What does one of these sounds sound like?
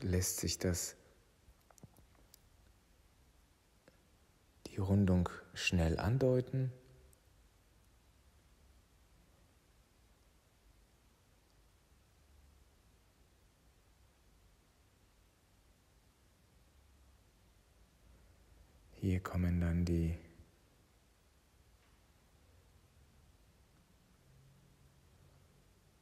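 A pen scratches softly across cardboard.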